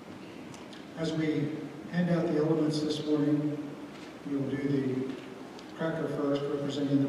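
A man speaks into a microphone in a large, echoing hall.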